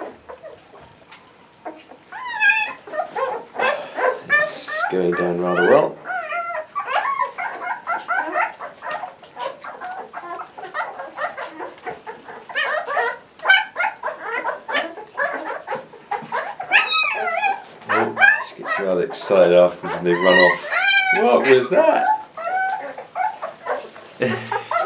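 Puppies lap and chew food from metal bowls.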